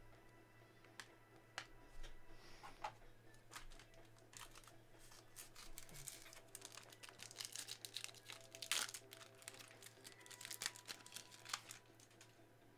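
A foil card pack crinkles and rustles in someone's hands.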